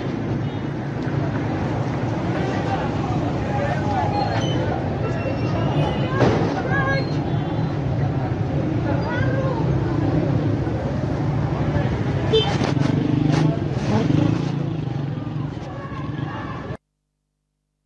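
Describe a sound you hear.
A crowd of people shouts and chants outdoors at night.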